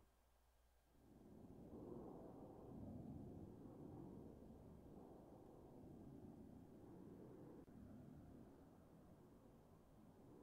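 Wind rushes steadily, as if falling through the air.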